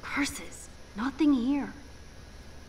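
A young woman mutters in a disappointed voice, close by.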